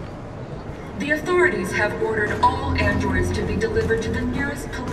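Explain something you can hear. A man speaks loudly through a loudspeaker in a large hall.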